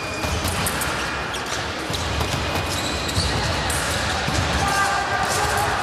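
Fencing blades clash and click in an echoing hall.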